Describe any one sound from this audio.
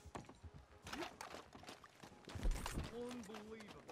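A horse's hooves clop on the ground.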